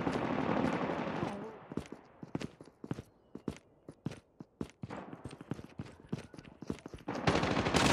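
Footsteps patter on hard ground.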